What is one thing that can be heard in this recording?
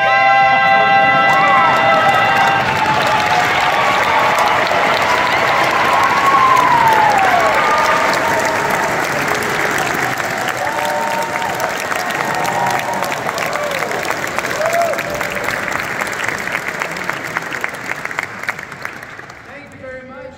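A large audience applauds and cheers loudly in an echoing hall.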